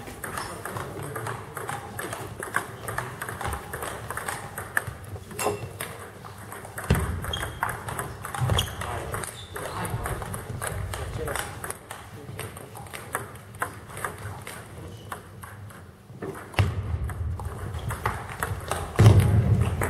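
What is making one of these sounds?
Table tennis balls click off paddles and bounce on tables in a large echoing hall.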